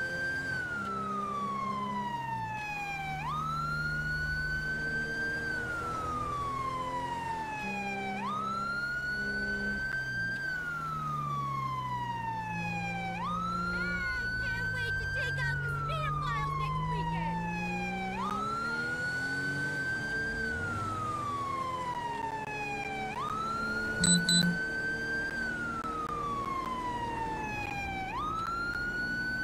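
A police siren wails steadily, rising and falling.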